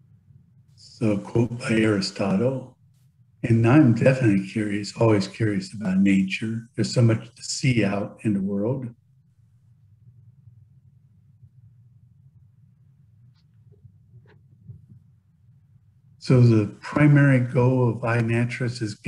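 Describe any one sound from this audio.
A middle-aged man talks calmly through an online call.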